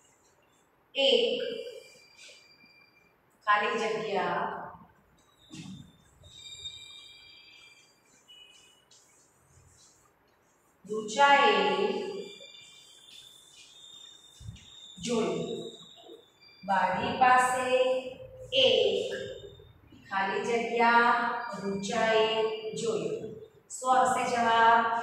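A woman speaks clearly and calmly, as if teaching.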